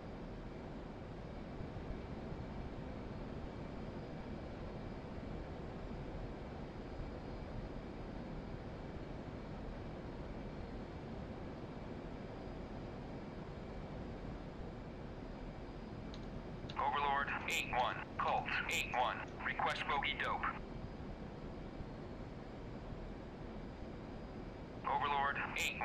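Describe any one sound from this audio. A jet engine roars steadily in a cockpit.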